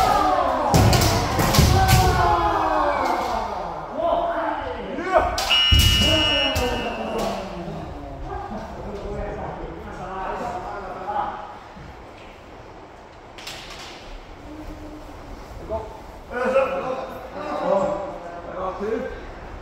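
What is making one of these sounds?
Several men shout loudly in a large echoing hall.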